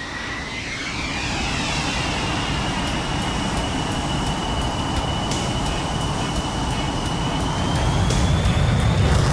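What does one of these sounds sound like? A jet engine whines and roars, its pitch slowly rising and the roar growing louder.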